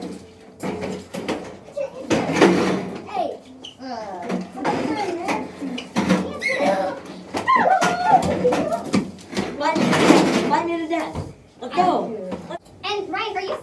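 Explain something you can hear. Teenage boys shout and laugh with excitement close by.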